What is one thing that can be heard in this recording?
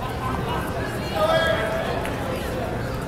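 Spectators shout encouragement loudly.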